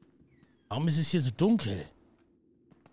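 A man speaks loudly and with animation into a close microphone.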